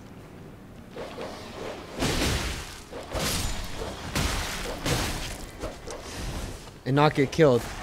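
A sword swings and strikes with sharp whooshes and clangs.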